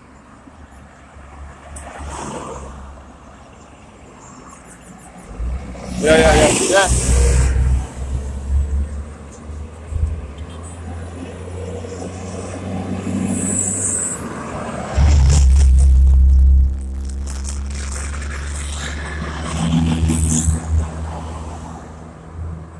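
Cars pass by close on a road, their tyres hissing on the asphalt.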